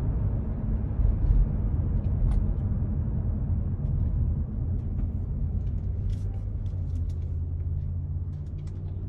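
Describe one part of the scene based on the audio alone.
A car engine hums steadily from inside and fades as the car slows to a stop.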